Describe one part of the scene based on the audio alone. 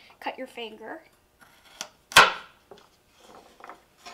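A knife taps on a cutting board as tomatoes are chopped.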